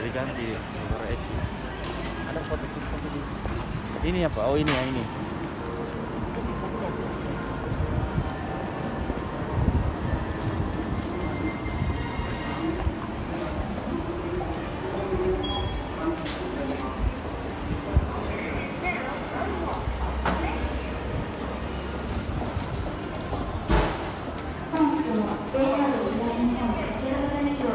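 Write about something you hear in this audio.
A busy crowd murmurs and chatters nearby.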